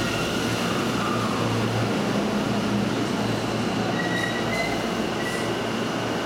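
An electric train hums and whines while standing close by.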